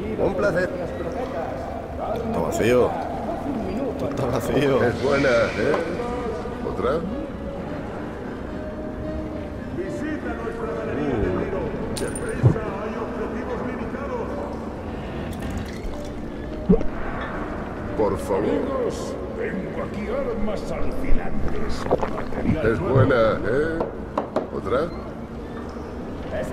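A mug clinks on a wooden counter.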